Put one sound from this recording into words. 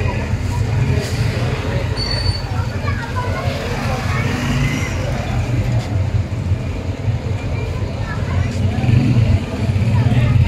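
A motorcycle engine idles and putters nearby.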